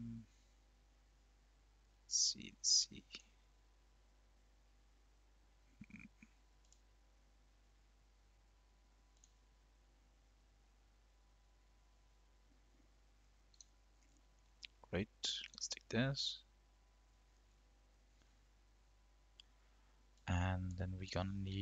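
Mouse buttons click.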